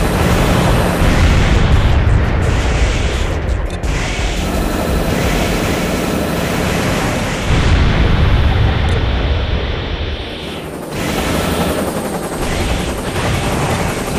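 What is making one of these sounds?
Heavy mechanical engines roar steadily.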